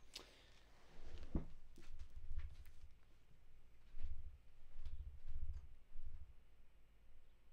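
Footsteps thud on a floor nearby.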